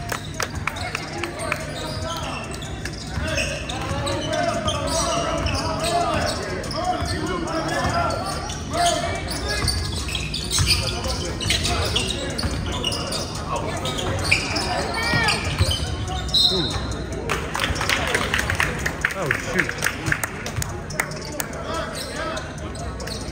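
A basketball bounces on a wooden floor in a large echoing gym.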